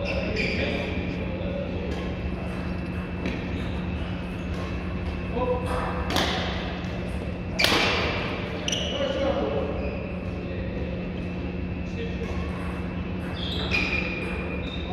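Badminton rackets smack shuttlecocks in quick rallies.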